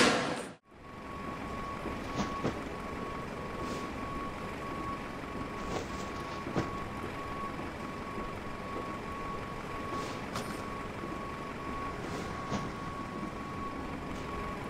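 An aircraft's engine hums steadily nearby.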